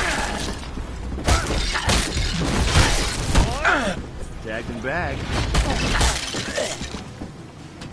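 Heavy blows thud and crack against a skeleton.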